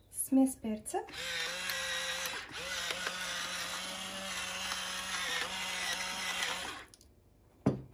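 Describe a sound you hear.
An electric pepper mill whirs steadily as it grinds.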